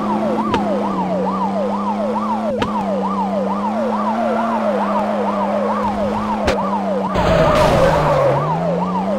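A siren wails in quick, repeating rising and falling sweeps.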